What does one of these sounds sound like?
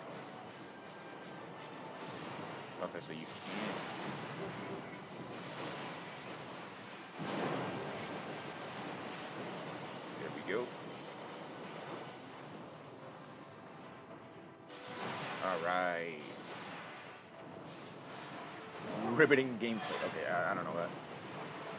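Laser guns fire rapid shots.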